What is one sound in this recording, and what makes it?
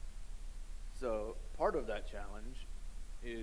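A young man speaks calmly, close up.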